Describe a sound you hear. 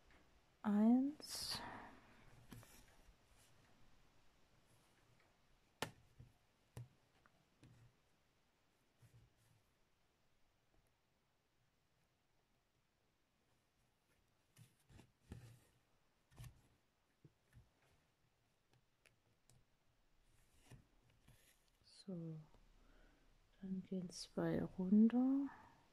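Thread rasps softly as it is drawn through stiff fabric.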